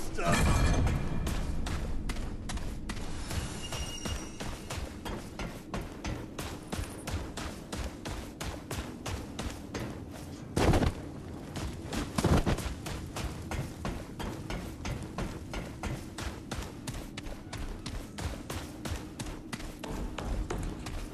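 Footsteps thud steadily and quickly on a hard floor.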